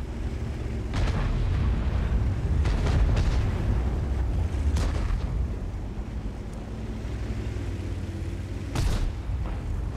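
A tank cannon fires with sharp booms.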